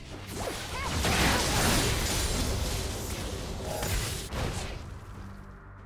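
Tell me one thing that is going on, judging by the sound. Magic blasts and blows clash in a fast fight.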